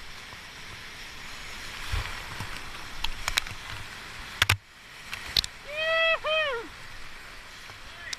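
Waves crash and splash against a kayak.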